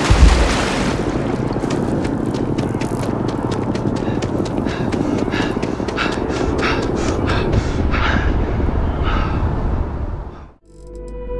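Running footsteps thud on hard pavement.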